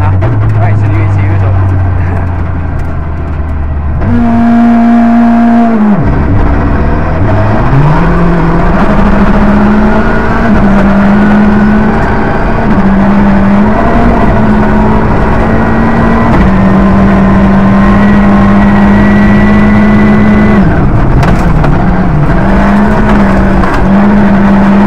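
A car engine revs hard and roars through the gears.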